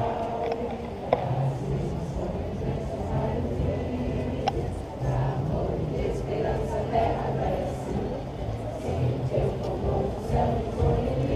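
A marching band plays drums and brass outdoors.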